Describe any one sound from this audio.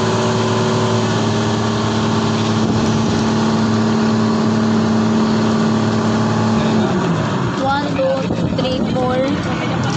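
Water splashes and churns against the hull of a moving boat.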